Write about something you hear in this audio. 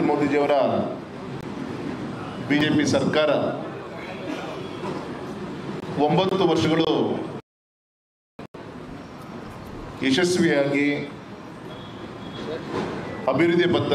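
A man speaks steadily into a microphone, in short bursts with pauses.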